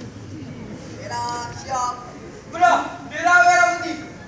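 A man shouts loud commands outdoors.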